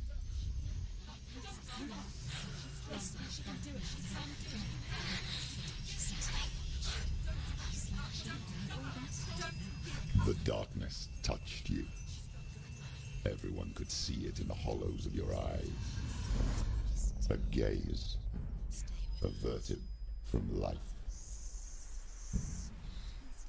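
A woman whispers close by in a low voice.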